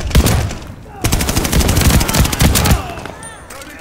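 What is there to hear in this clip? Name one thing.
A submachine gun fires a rapid burst of shots.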